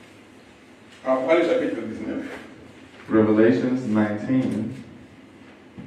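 A man speaks with emphasis into a microphone, in short bursts.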